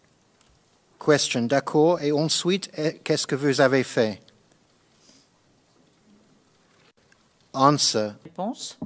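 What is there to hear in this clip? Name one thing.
A man reads out calmly into a nearby microphone.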